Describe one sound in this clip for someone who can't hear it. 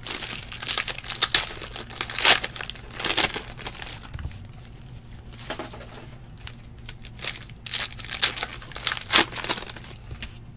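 A foil wrapper of a card pack crinkles and tears.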